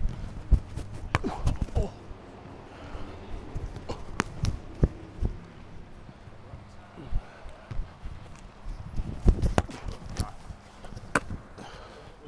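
A ball is caught with sharp slaps and thuds in a large echoing hall.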